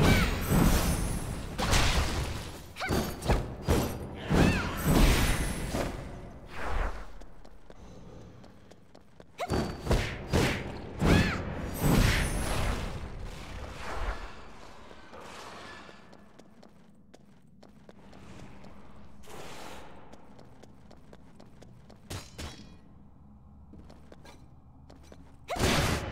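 Swords slash and clang in a fast fight.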